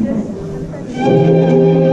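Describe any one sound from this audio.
Music starts playing over loudspeakers.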